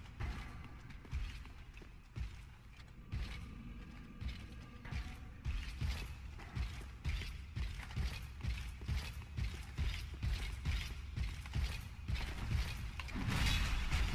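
Armoured footsteps thud in a steady run on a hard floor.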